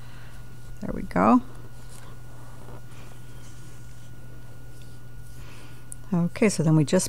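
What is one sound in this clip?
Yarn rustles softly between fingers.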